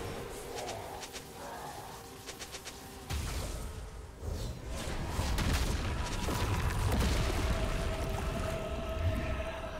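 Game spell effects crackle and whoosh in a fast fight.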